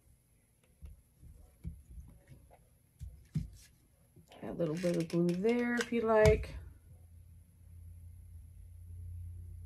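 Small objects click and rustle on a table.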